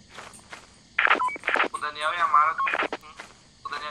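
A young person speaks briefly into a headset microphone.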